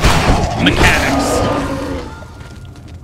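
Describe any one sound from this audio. A blade slashes into flesh with a wet, heavy thud.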